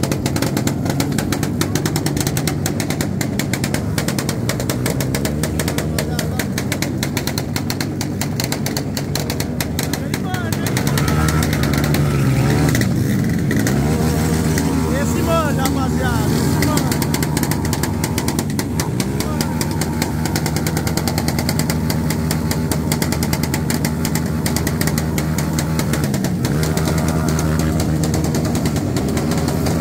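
A motorcycle engine revs loudly and roars throughout.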